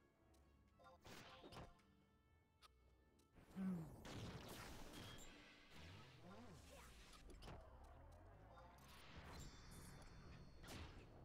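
Magic spells whoosh and chime in bursts.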